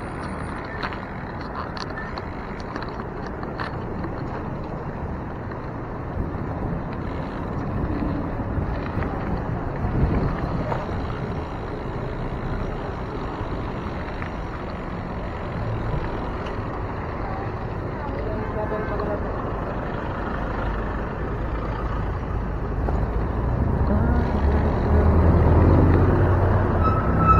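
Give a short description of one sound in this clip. Wind rushes against the microphone as a bicycle rides along, growing louder toward the end.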